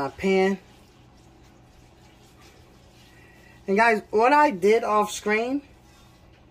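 A brush swishes softly across a pan.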